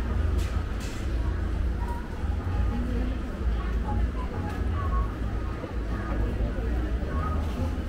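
People talk faintly in the distance.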